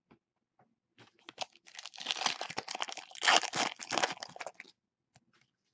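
A foil wrapper crinkles and tears as hands open it.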